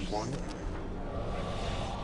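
A laser beam hums as it fires.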